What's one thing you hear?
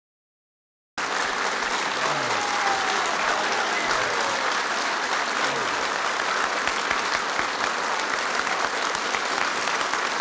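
A large crowd applauds loudly in a large room.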